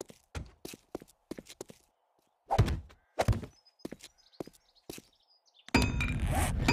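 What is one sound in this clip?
Short wooden knocks sound as blocks are placed, one after another.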